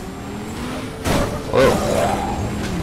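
A car crashes with loud metallic bangs.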